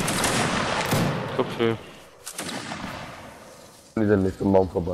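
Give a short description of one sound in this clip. A volley of musket shots booms and crackles, then rumbles away.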